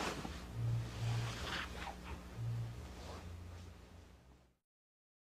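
Fabric rustles as bodies shift on a mat.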